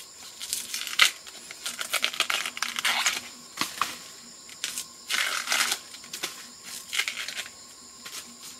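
A knife scrapes and peels a bamboo shoot.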